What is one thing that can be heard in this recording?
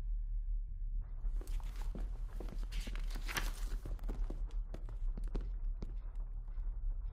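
Footsteps tap steadily across a hard floor.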